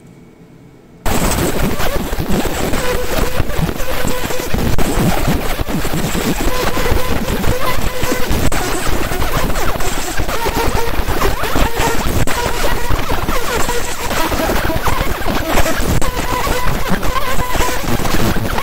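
A laser engraver fires with a loud, steady crackling hiss.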